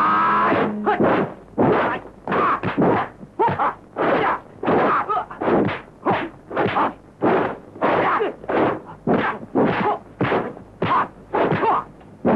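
Blows land with sharp, repeated thwacks.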